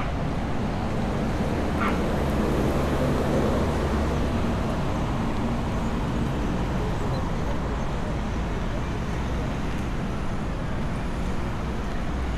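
Traffic rumbles steadily along a nearby street outdoors.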